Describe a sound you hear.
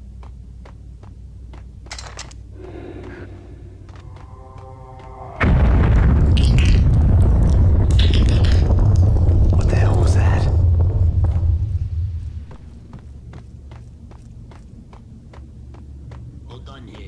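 Footsteps thud steadily on a hard floor in an echoing space.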